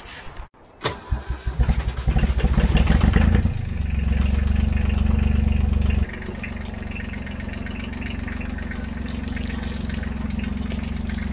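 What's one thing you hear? A tractor engine runs and rumbles as the tractor drives closer.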